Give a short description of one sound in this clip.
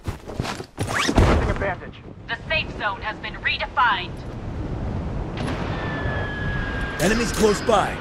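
Wind rushes past while gliding through the air.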